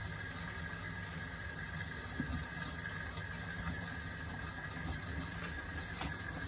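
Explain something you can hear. Wet laundry sloshes and tumbles inside a washing machine.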